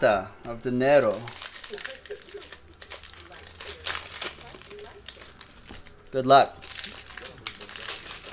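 Foil card packs crinkle and tear as they are opened.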